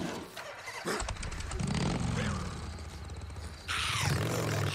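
A motorcycle engine starts up and idles with a deep rumble.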